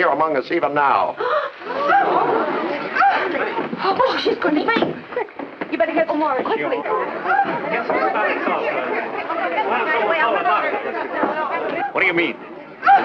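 A crowd of men and women chatter and talk over one another.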